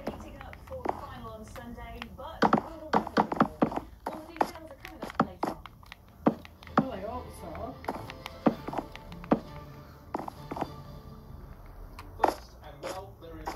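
Wooden blocks are placed with short, soft knocks.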